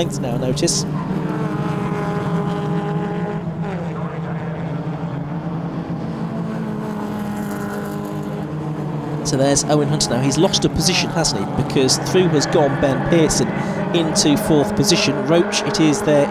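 Racing car engines roar and whine as cars speed past on a track.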